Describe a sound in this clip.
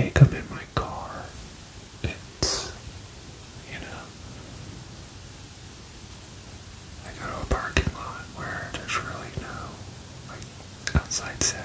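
A man speaks animatedly and close up, in short bursts.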